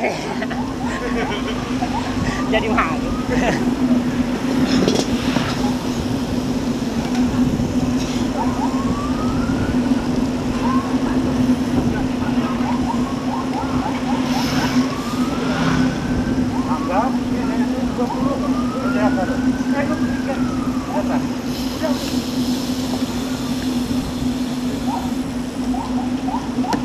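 Bicycle wheels and chains whir on the road.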